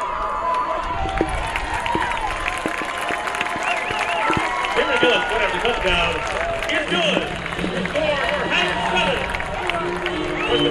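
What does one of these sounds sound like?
A distant crowd cheers outdoors.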